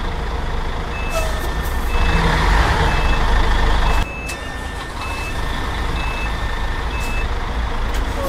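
A turn signal ticks in a steady rhythm.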